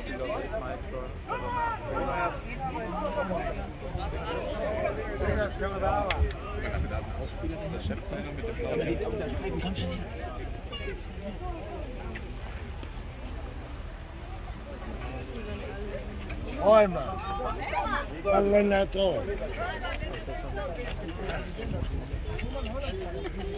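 A crowd of men and women chatter close by outdoors.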